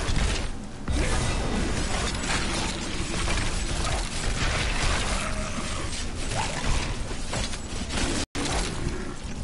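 Swords clash and bones clatter in a fight.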